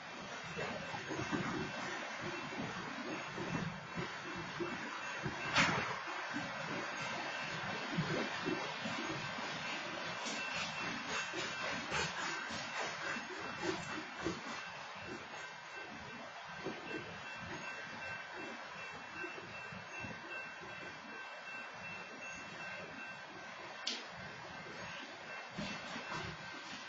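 Train wheels clank and rattle on the rails.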